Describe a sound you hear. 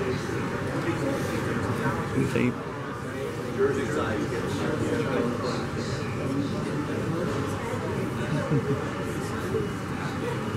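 A man talks nearby.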